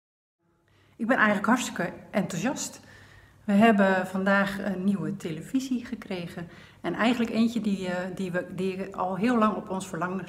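A middle-aged woman talks animatedly close to the microphone.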